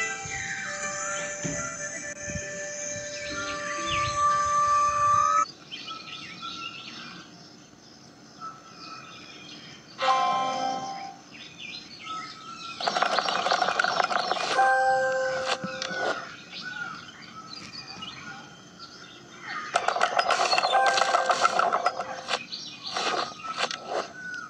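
Cheerful video game music plays with bright chimes.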